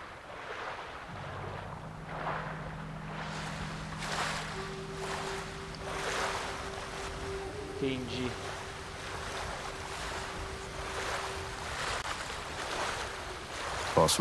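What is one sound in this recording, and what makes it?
Water rushes and splashes in repeated surges.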